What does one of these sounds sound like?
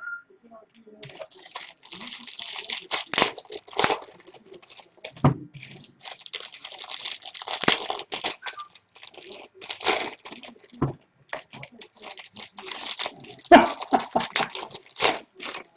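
Card packs rustle and crinkle as hands tear them open.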